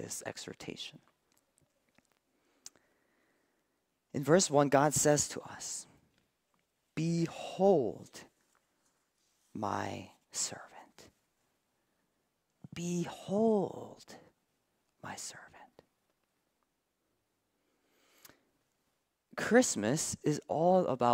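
A young man speaks calmly into a microphone, with pauses between phrases.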